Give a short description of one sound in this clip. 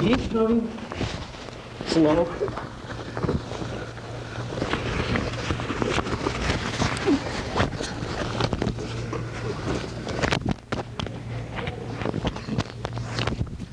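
Bodies thump and scuffle on a carpeted floor.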